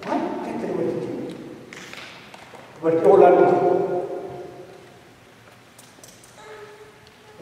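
A man speaks slowly and calmly through a microphone in a reverberant hall.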